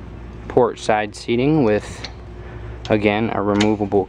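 A plastic latch clicks as a hand pulls it.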